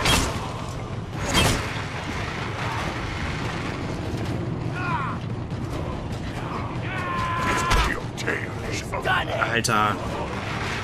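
Heavy punches and blows land with sharp thuds.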